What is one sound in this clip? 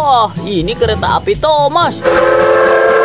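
A toy train plays warbling electronic sounds close by.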